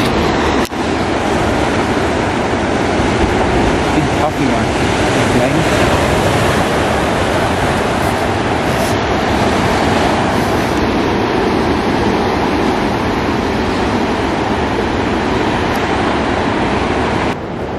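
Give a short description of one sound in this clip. Waves break and wash over rocks on a shore.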